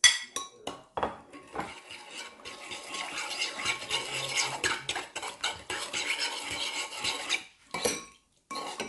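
A spoon stirs and clinks in a ceramic bowl.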